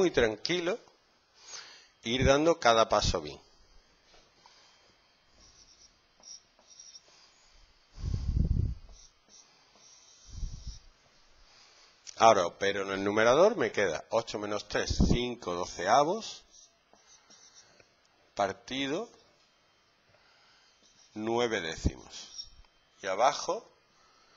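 A man explains calmly, close by.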